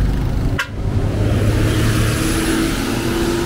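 A large bus roars past close by.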